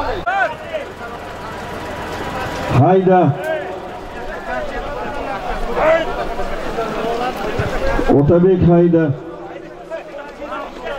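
A crowd of men shouts and calls out outdoors.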